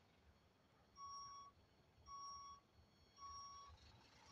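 A truck's reversing alarm beeps at an even pace.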